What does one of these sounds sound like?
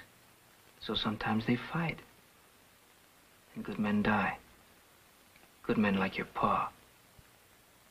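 A young boy speaks softly and anxiously, close by.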